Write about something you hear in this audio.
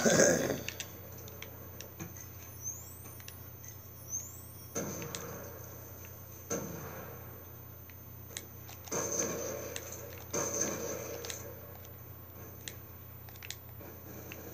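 Gunshots from a video game crack through a television speaker.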